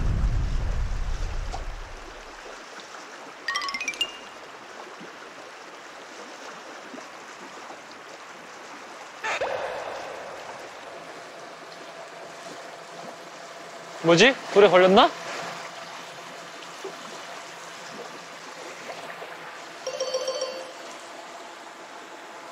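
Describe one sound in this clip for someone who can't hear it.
Shallow river water rushes steadily over stones.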